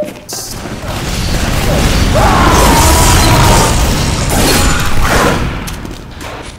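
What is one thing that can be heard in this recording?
Gunshots and blasts crack rapidly in a loud fight.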